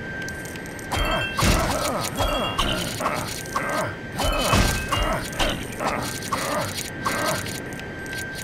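Plastic bricks clatter and smash apart in a burst of crashes.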